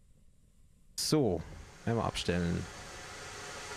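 A steam whistle blows in short blasts.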